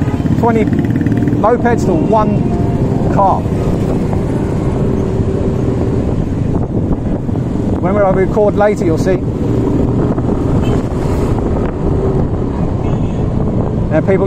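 Motorbikes and tricycles rumble past in nearby street traffic.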